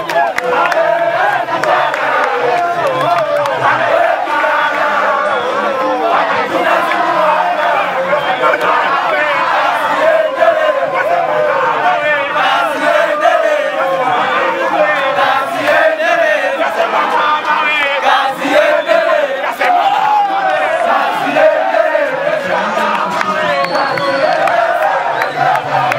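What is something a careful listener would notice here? A crowd of young men and women sings and chants loudly outdoors.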